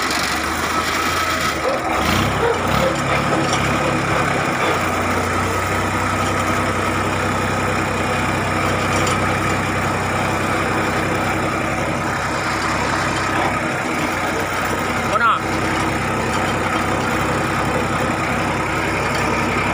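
A small tractor engine chugs steadily up close.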